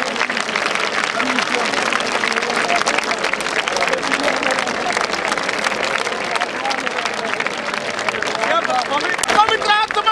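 A large crowd cries out and prays aloud together outdoors.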